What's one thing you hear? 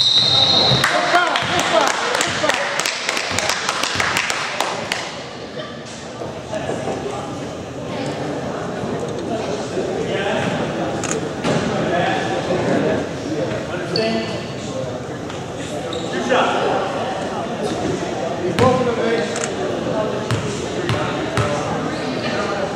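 Voices of players and a small crowd murmur and call out in an echoing hall.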